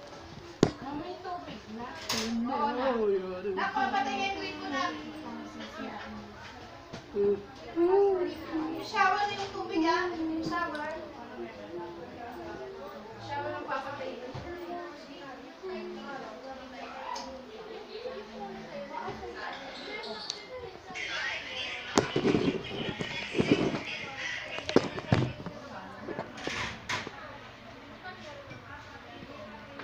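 Women talk casually nearby in a room.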